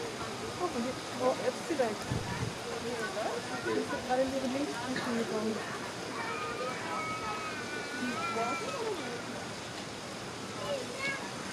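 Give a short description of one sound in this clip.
A bear tears and chews at a chunk of raw meat.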